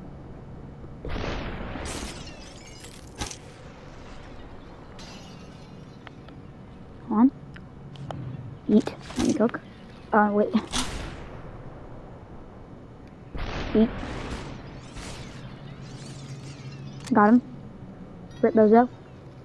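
Pistol shots ring out one after another.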